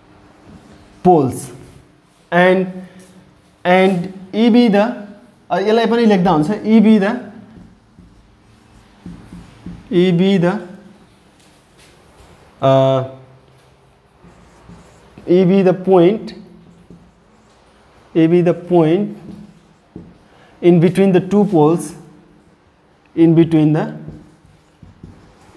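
A young man speaks calmly and explains nearby, in short phrases with pauses.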